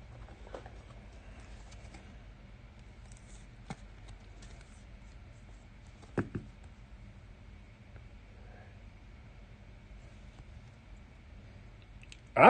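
A plastic card case clicks and rustles in a man's hands.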